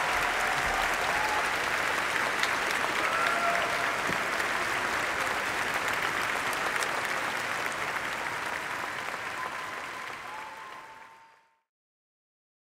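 A large crowd claps and cheers in a big hall, then fades away.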